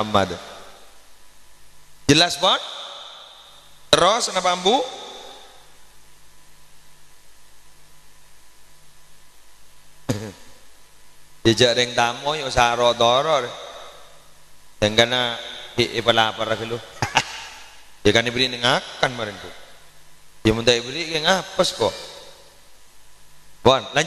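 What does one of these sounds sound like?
A man speaks and chants with feeling into a microphone, heard through loudspeakers with an echo.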